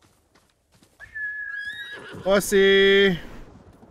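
A horse neighs.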